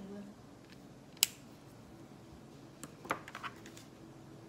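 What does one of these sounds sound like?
Marker pens click and clatter as they are handled.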